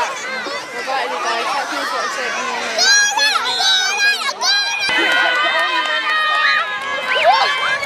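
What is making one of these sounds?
Young children shout excitedly close by.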